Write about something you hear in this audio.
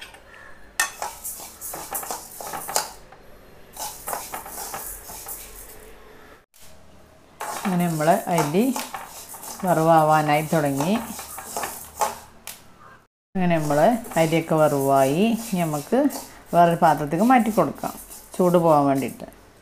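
A metal spoon scrapes and stirs grains in a metal pan.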